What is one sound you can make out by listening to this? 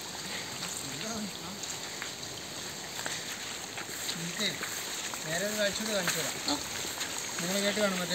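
A young man talks calmly close by, outdoors.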